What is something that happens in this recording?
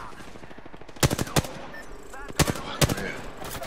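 A rifle fires several loud, sharp shots.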